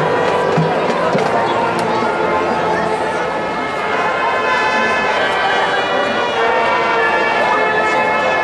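Drums beat in time with a marching band.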